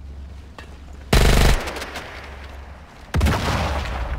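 Dry branches rustle and crackle as a soldier pushes through them.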